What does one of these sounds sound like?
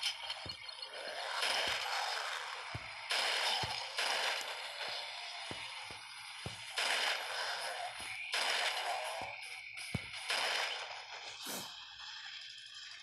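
Pistol shots ring out again and again.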